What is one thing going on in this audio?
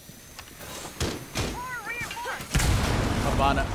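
Gunfire bursts out loudly nearby.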